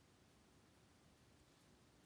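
A spoon scrapes food in a pan.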